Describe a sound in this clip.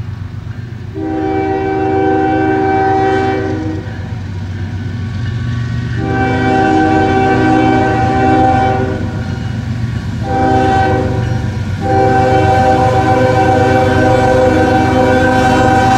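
A train horn blares in long blasts as a locomotive approaches.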